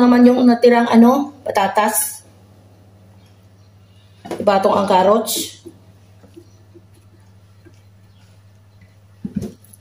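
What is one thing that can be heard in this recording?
Slices of vegetable are laid softly into a glass baking dish.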